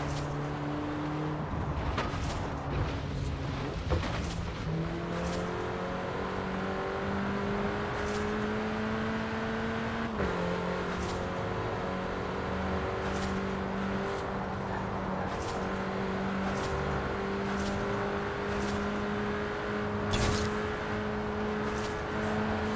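A car engine roars steadily and climbs in pitch as it speeds up.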